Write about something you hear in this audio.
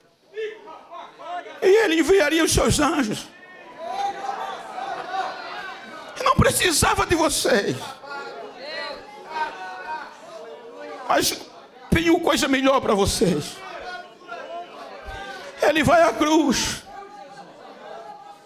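A man preaches with animation through a microphone and loudspeakers, often shouting.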